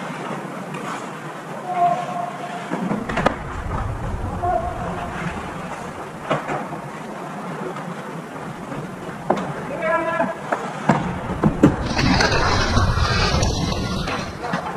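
Ice hockey skates scrape and carve across the ice in an echoing rink.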